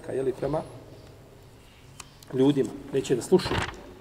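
Paper rustles as a man turns a page.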